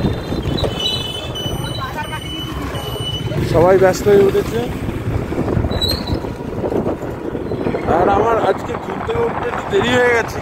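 Motorbike engines rumble past on a street.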